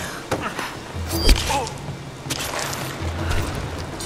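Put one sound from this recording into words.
A heavy blow lands with a thud during a struggle.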